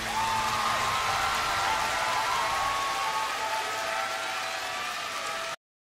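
A large crowd cheers and whistles loudly.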